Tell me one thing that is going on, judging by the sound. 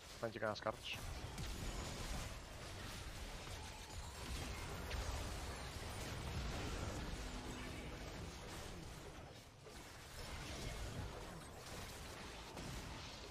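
Game combat effects whoosh and thud continuously.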